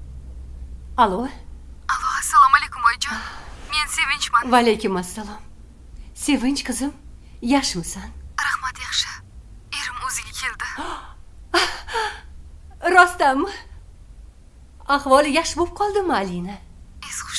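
A middle-aged woman talks cheerfully into a phone nearby.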